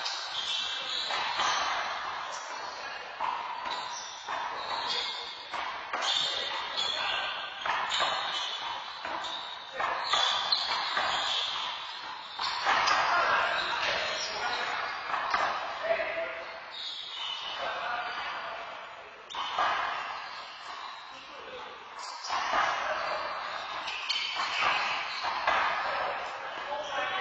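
A ball smacks against the walls of an echoing court.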